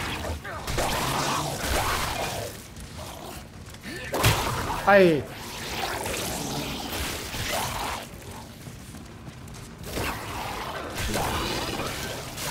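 A blade slashes into flesh with wet thuds.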